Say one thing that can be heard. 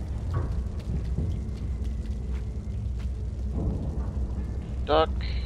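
Small footsteps patter softly on a wooden floor.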